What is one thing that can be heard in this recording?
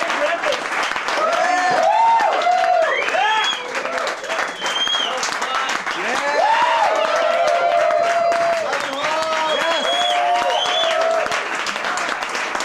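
A man shouts excitedly close by.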